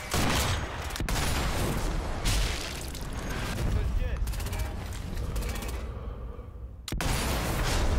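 A sniper rifle fires sharp shots.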